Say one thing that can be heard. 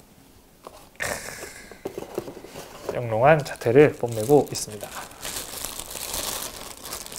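Plastic wrap crinkles as hands handle it.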